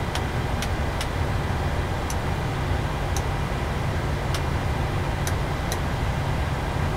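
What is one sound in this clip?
Jet engines hum steadily at idle.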